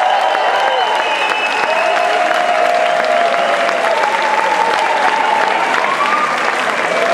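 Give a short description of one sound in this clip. A man sings through a microphone over the band.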